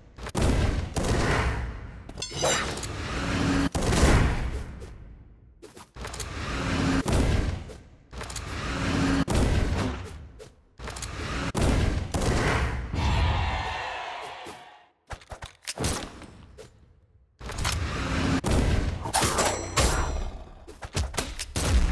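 Weapons clash and swoosh with punchy hits.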